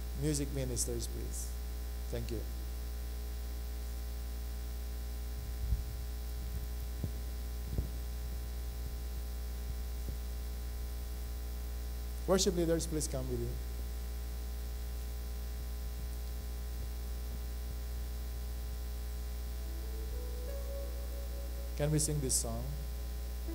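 A man speaks into a microphone in short bursts, heard through a loudspeaker.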